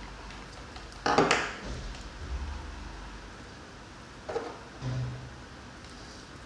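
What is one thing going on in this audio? Plastic pipe fittings click and rub as hands fit them together.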